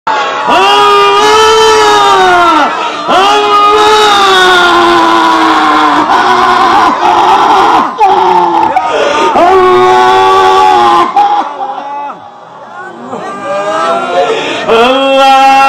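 A man sings a prayer in a long, drawn-out wailing voice through a loudspeaker.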